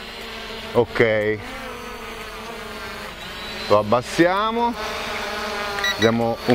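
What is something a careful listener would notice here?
A drone's propellers whine steadily overhead.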